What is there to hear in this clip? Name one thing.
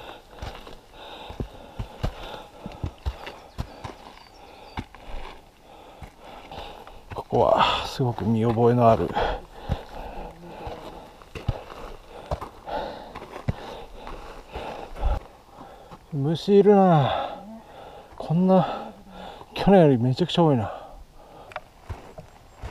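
Boots crunch and scuff on a dirt trail with steady footsteps.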